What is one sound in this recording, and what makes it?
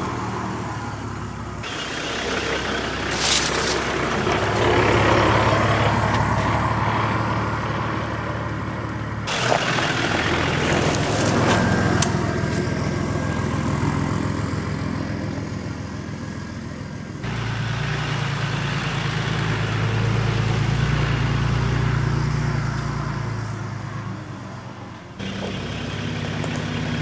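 A vehicle engine rumbles low as it drives slowly past.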